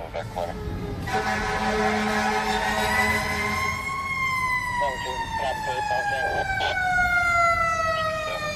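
A fire truck siren wails nearby, rising and then falling in pitch.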